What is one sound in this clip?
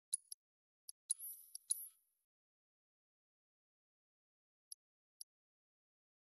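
Soft, high electronic menu blips sound a few times.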